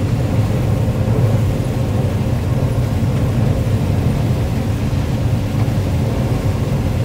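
A harvester engine drones loudly and steadily.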